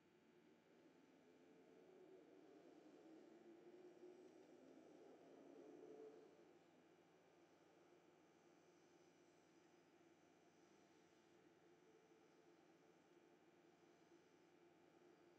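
An electric underground train rumbles past, heard through a loudspeaker.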